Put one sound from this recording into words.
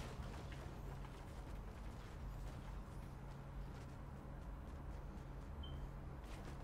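Footsteps patter in a video game.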